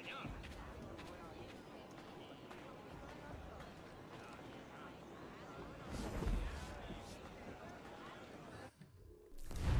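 Footsteps pad along a dirt path.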